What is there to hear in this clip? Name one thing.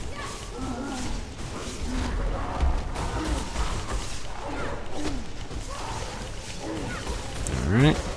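Electric spells crackle and zap in quick bursts.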